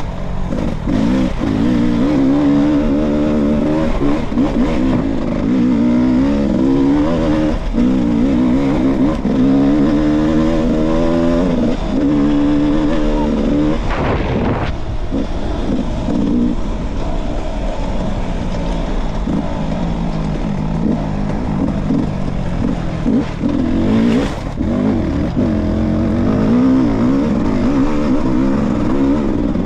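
A dirt bike engine revs hard and close, rising and falling in pitch.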